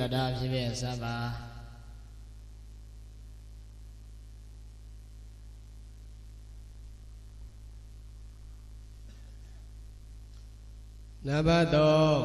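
A young man speaks calmly into a microphone, heard through a loudspeaker.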